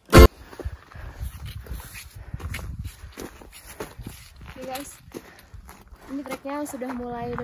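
A walking pole taps on stony ground.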